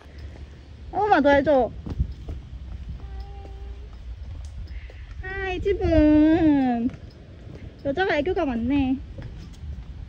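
A young woman speaks playfully nearby.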